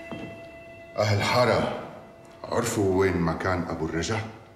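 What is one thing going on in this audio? A man speaks firmly in a room.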